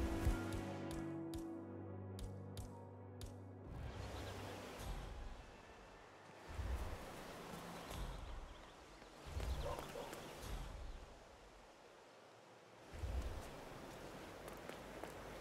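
Footsteps hurry over pavement.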